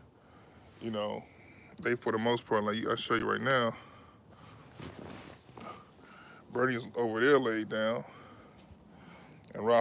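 A middle-aged man talks close by with animation.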